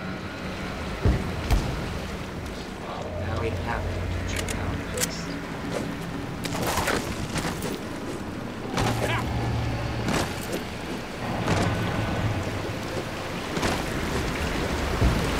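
Game gunfire and impacts crack and thud.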